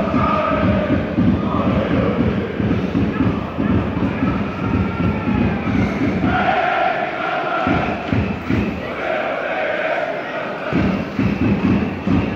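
A crowd of fans chants and sings far off across an open stadium.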